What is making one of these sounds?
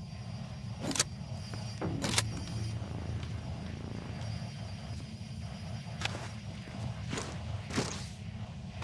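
Short metallic clicks sound as items are picked up.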